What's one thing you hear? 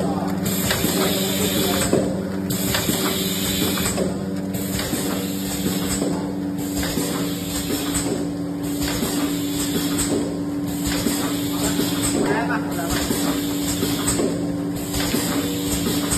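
A packaging machine hums steadily.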